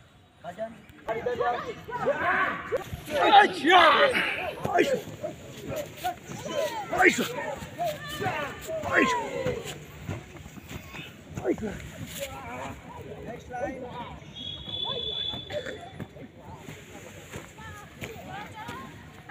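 Young men shout loudly outdoors.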